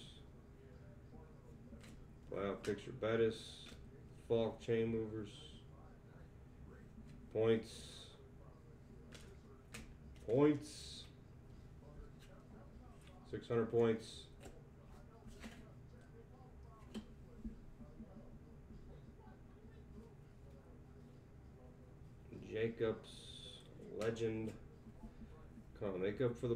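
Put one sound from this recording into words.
Trading cards rustle and slide as they are flipped through by hand.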